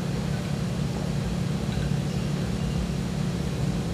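A young man gulps down a drink.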